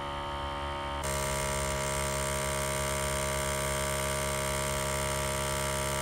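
Water sprays and hisses onto a metal coil.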